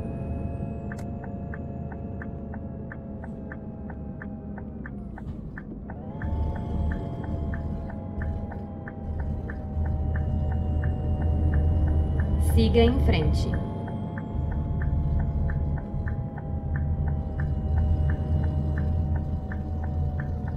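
A turn signal ticks at a steady, even pace.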